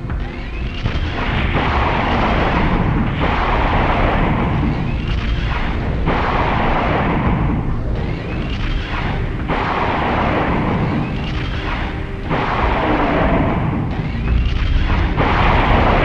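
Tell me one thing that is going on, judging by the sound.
An energy gun fires rapid bursts of shots.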